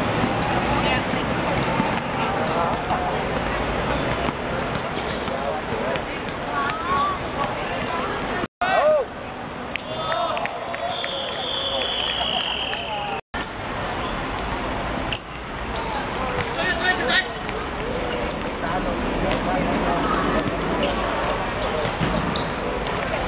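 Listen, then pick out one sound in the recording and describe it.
A ball thuds as players kick it on a hard court.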